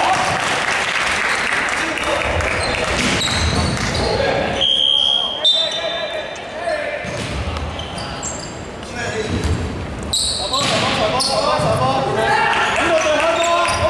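Young men shout and call out to each other across the hall.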